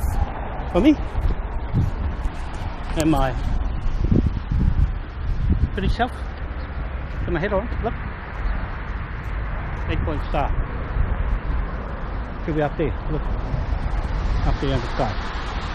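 A middle-aged man talks close by, in a calm voice.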